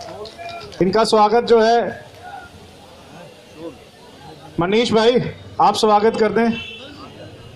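A man close by shouts slogans loudly in short bursts.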